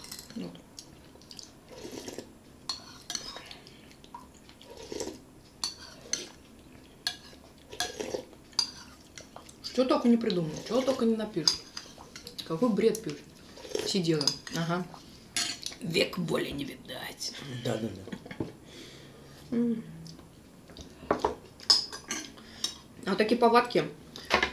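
Spoons clink against bowls.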